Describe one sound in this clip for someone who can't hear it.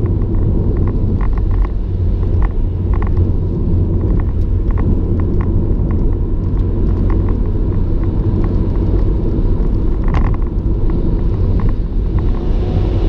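Raindrops tap on a windscreen.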